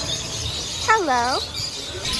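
A parrot squawks once.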